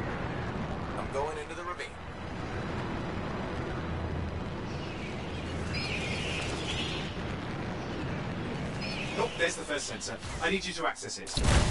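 A man talks casually close to a microphone.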